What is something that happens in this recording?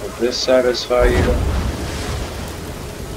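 Flames burst and roar.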